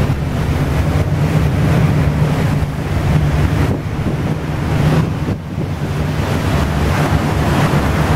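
Churning water rushes in the ship's wake.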